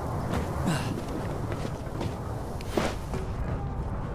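Hands clamber over a metal ledge with a clatter.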